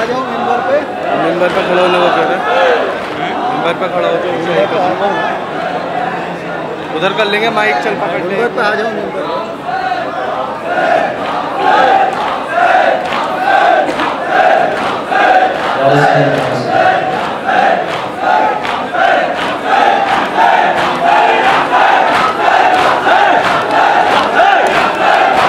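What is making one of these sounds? A man sings a lament loudly through a microphone, echoing through loudspeakers.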